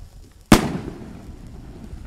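A firework bursts with a loud bang overhead.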